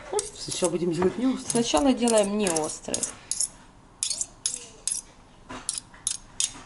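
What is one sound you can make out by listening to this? Forks clink and scrape against a bowl.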